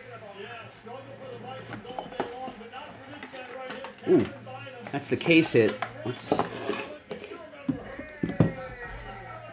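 A cardboard box scrapes and taps as it is handled.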